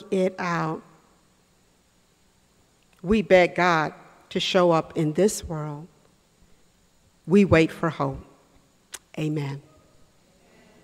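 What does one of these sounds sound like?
A woman speaks with feeling into a microphone.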